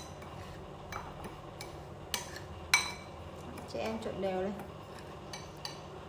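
A metal spoon scrapes and clinks against a bowl.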